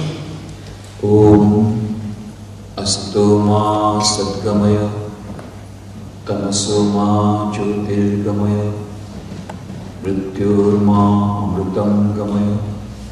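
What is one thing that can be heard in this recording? A middle-aged man chants slowly through a microphone in a large echoing hall.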